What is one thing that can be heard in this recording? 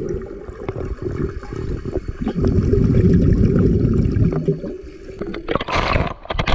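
Water rumbles and bubbles underwater.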